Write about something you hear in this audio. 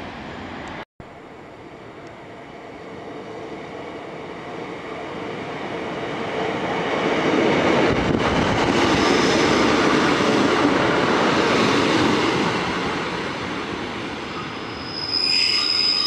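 A train rumbles along the track and passes close by.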